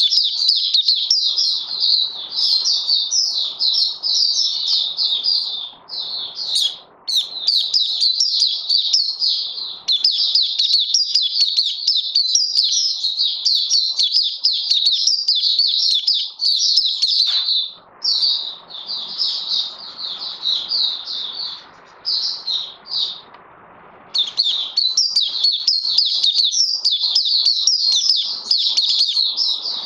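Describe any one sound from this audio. A small bird sings a rapid, high twittering song close by, with brief pauses.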